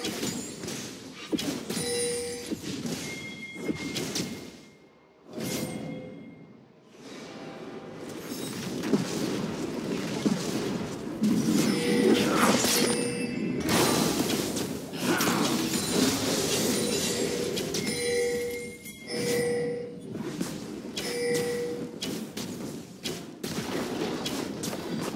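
Game combat effects clash, slash and whoosh in quick bursts.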